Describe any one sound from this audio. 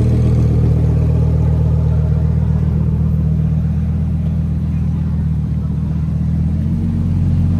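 A sports car engine idles with a deep, loud rumble.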